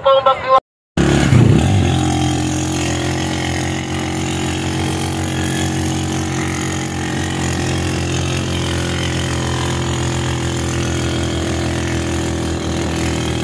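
A motor tricycle engine hums steadily while riding.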